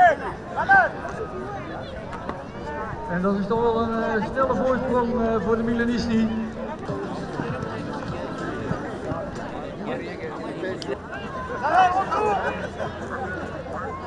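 Young players shout to each other across an open field outdoors.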